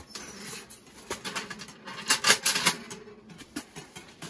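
A small metal stove rattles and clanks as it is handled.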